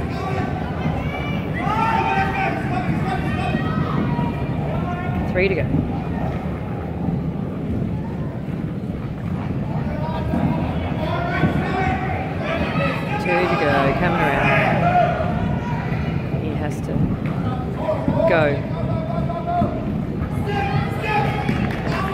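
Inline skate wheels roll and rumble on a wooden floor.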